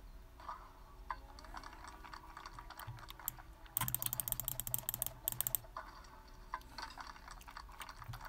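Bowling pins clatter as a ball knocks them down.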